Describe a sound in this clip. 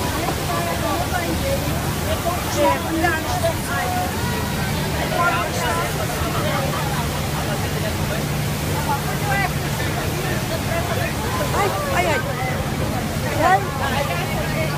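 A boat engine drones at a low pitch.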